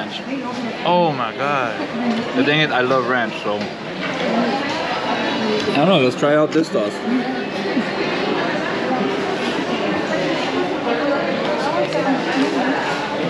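A steady murmur of chatter fills a busy room.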